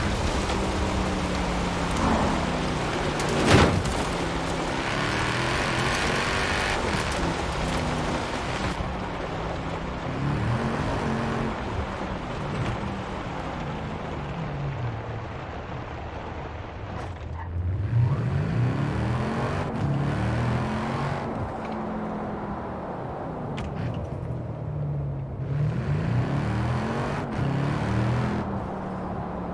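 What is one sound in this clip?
A sports car engine roars, revving up and down as the car speeds along.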